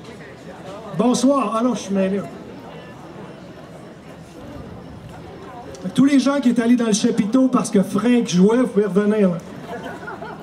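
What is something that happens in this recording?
A man sings through loudspeakers outdoors.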